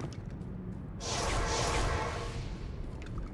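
A magic portal opens with a rushing whoosh.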